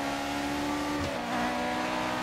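A racing car engine drops in pitch as the gear shifts, then climbs again.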